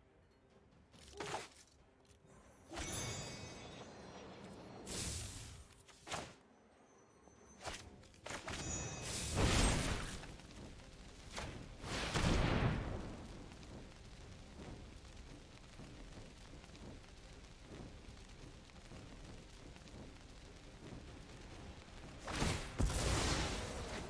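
Digital game sound effects whoosh and chime as cards are played.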